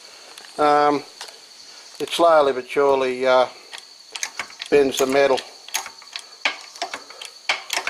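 A sheet of metal clanks and creaks as a press bends it.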